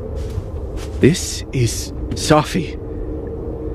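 A young man speaks with emotion.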